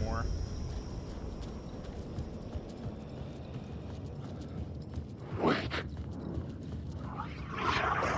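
A man's footsteps crunch on gravel and debris.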